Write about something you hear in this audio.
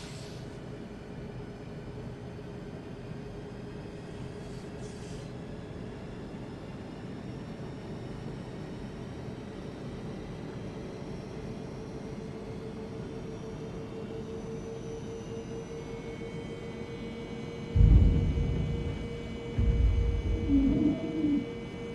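An aircraft cabin hums with a steady low engine drone.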